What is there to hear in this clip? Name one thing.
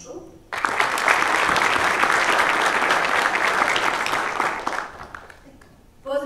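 An audience applauds loudly in a large hall, then the clapping fades away.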